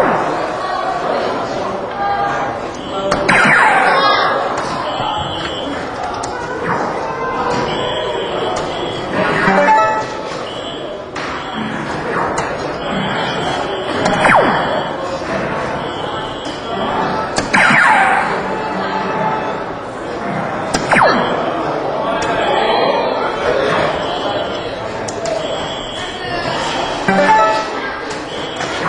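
A crowd murmurs in a large, echoing hall.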